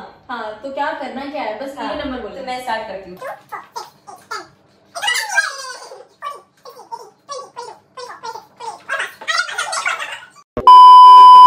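A second young woman answers and laughs close by.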